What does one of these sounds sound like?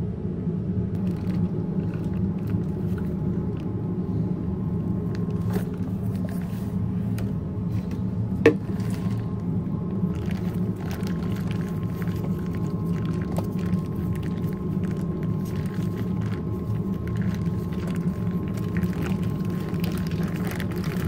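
Aluminium foil crinkles and rustles in gloved hands.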